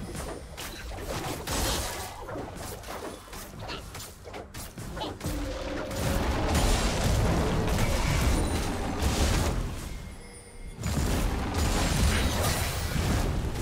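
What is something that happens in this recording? Video game spells crackle and boom in a busy battle.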